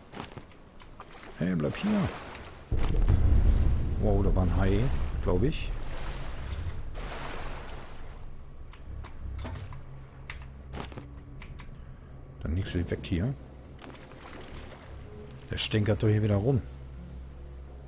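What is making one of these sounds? Water sloshes and splashes around a swimmer.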